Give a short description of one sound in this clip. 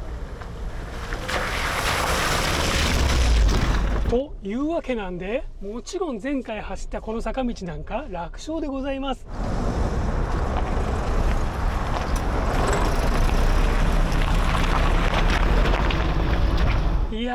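Tyres crunch over gravel and stones as a car drives past.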